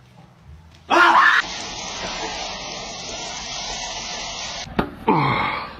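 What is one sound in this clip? Water sprays from a shower head.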